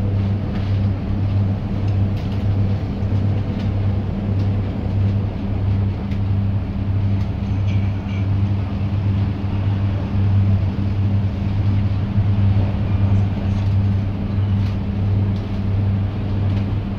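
A bus engine drones steadily with a low throbbing hum.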